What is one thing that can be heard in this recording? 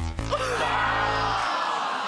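An elderly man shouts out in surprise.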